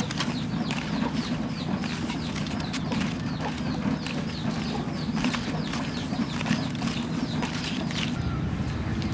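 Corn husks rustle and tear as they are peeled.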